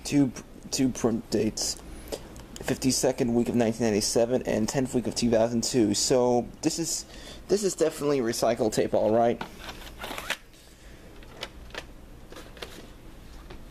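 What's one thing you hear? Plastic tape cases clack and knock as they are handled.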